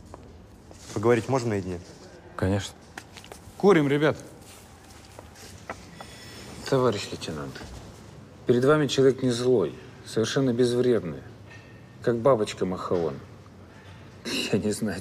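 A man speaks in a relaxed, drawling voice.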